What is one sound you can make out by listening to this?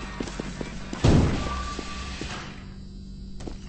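A loud sudden crash booms and rings out.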